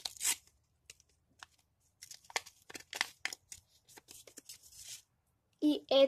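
Paper crinkles and rustles as it is unwrapped close by.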